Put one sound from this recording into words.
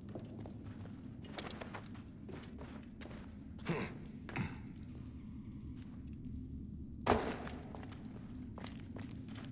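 Footsteps crunch on sand and stone.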